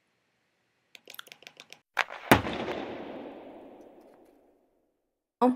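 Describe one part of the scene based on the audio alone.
A rifle fires a rapid burst of shots that ring out and fade.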